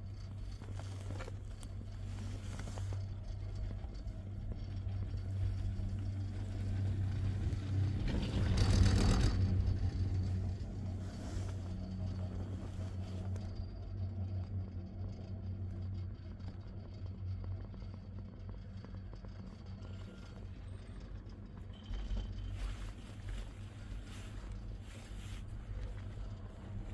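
A chairlift hums steadily as it runs along its cable.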